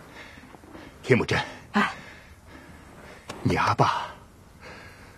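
A man speaks slowly in a deep, stern voice.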